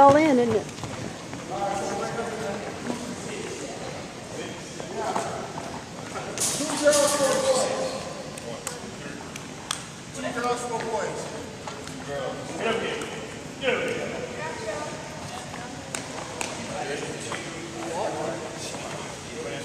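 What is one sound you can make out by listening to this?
Young men talk and call out casually in a large echoing gym.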